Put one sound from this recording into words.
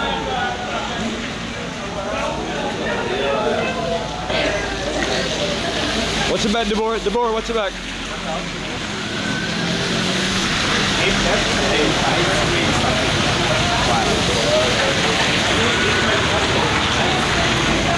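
A car drives slowly past on a wet street.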